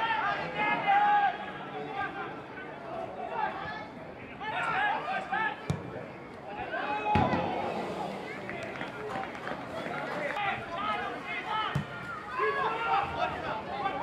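Young men shout and call to each other across an open field.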